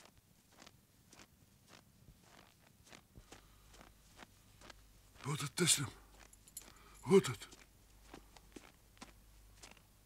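A horse's hooves thud softly on packed snow.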